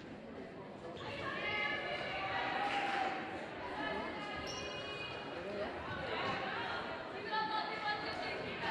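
A group of young women chant and cheer together in a large echoing hall.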